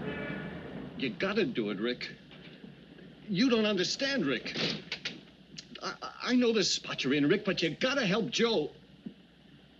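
A young man talks on a phone with animation.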